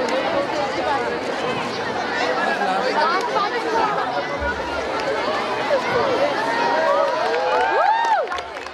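A large crowd of children and adults chatters and shouts noisily outdoors.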